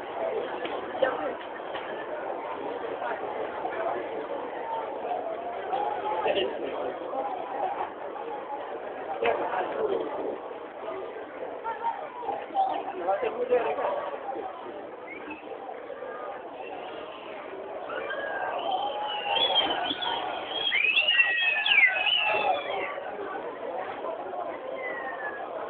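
A large stadium crowd roars and chants in the open air.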